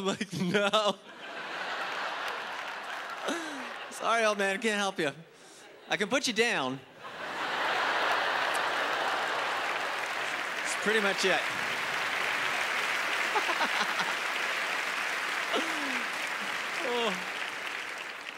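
A large audience laughs and applauds in a hall.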